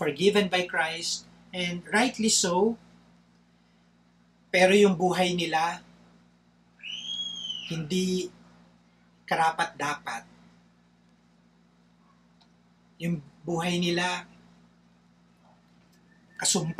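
A man talks calmly in short phrases, close to a microphone.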